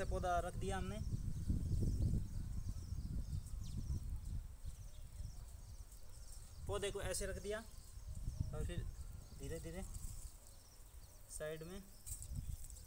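A young man speaks briefly nearby.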